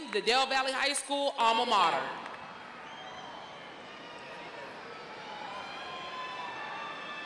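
A large crowd murmurs.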